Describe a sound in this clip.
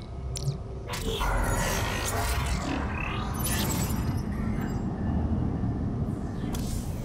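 A deep mechanical whoosh rumbles as heavy parts shift into place.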